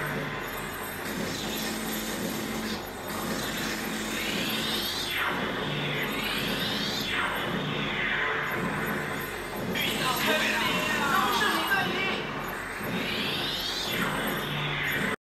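Electronic zaps and sweeping effects from an arcade game rise and fall in pitch, over and over.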